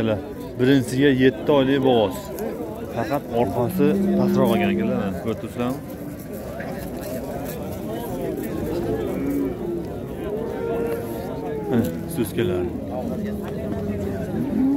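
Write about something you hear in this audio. A crowd of men talk and call out all around outdoors.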